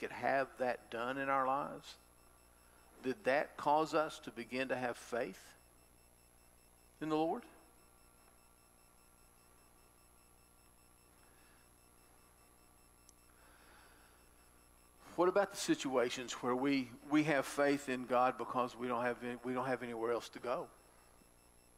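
A middle-aged man speaks calmly into a microphone, with pauses, in a room with some echo.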